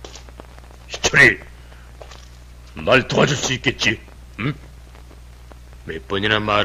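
Another man answers sharply.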